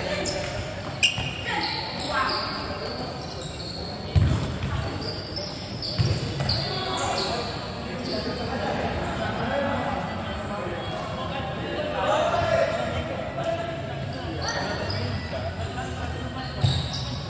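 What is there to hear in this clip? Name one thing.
A ball thumps when kicked.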